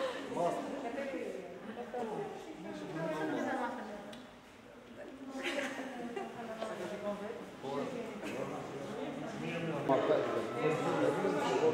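Several adults talk and murmur nearby in a room with slight echo.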